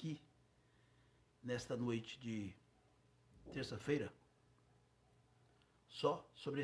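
A middle-aged man speaks calmly and close to the microphone, in short phrases with pauses.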